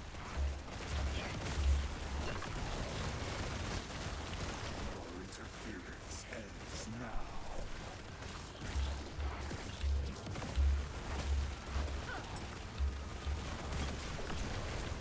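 Deep booming thuds pound again and again.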